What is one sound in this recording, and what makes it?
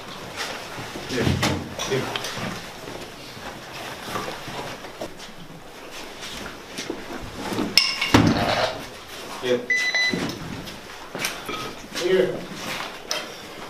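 A man speaks in short, urgent bursts nearby.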